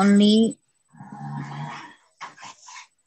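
A young woman speaks through an online call.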